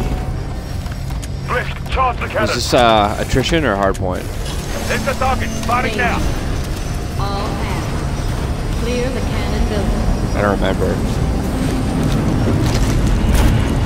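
A dropship's engines rumble steadily.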